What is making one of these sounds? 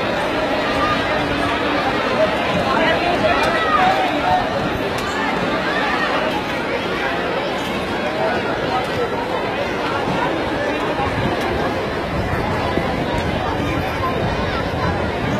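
A crowd of men and boys talks and shouts outdoors.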